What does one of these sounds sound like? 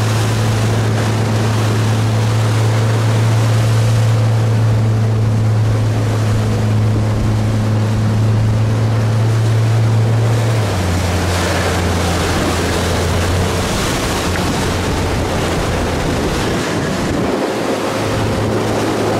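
Wind gusts strongly outdoors.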